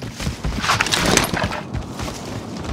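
A rifle rattles as it is handled.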